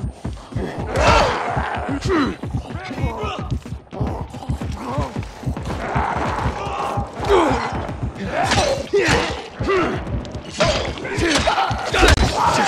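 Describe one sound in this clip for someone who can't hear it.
A blade weapon swings and strikes flesh with heavy thuds.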